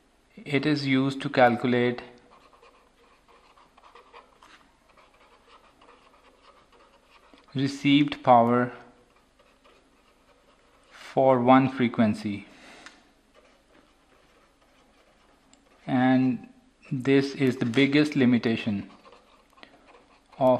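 A pen scratches across paper as it writes.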